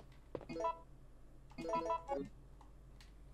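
Short electronic menu chimes ring out.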